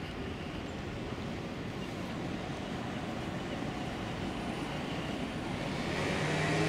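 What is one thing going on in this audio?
A car drives slowly past outdoors.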